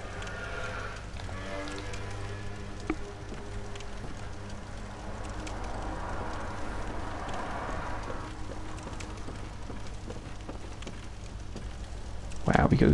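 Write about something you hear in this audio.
A torch flame crackles and flickers.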